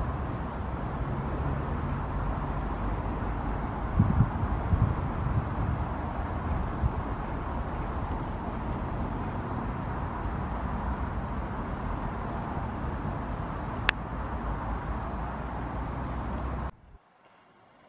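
A high-speed train roars past with a loud rushing rumble.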